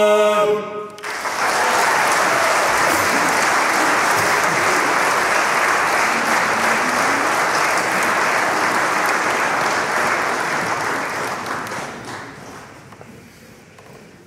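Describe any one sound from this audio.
An audience applauds loudly and then fades.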